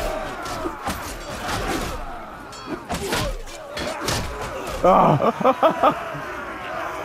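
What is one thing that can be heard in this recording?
Swords clash and clang in a battle.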